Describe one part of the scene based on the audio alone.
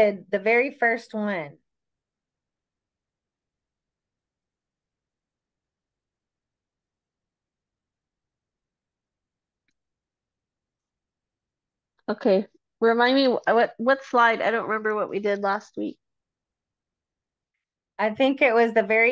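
A woman speaks calmly over a microphone, pausing between phrases.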